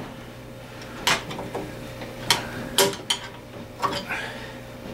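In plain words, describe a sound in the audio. Metal parts click and tap sharply a few times.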